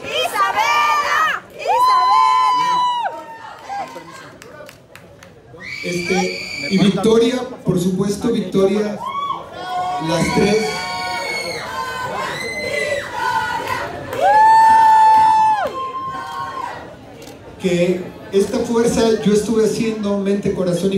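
A woman sings loudly through loudspeakers.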